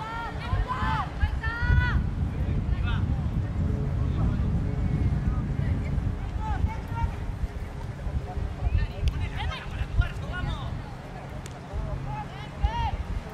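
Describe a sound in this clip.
Young women shout to each other outdoors.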